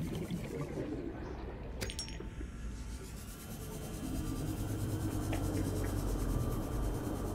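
A small submersible's motor hums steadily as it cruises underwater.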